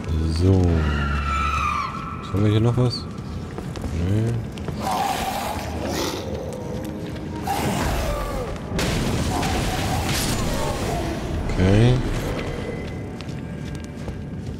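Footsteps crunch over loose gravel.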